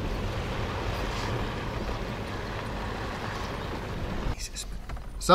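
A car rumbles along a bumpy dirt track.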